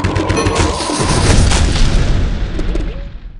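A loud blast throws up dirt and debris.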